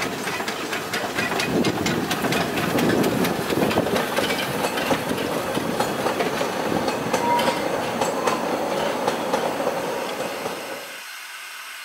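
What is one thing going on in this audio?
Narrow-gauge carriage wheels clatter over rail joints as a train passes.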